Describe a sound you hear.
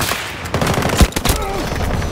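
A rifle fires a single sharp, loud shot.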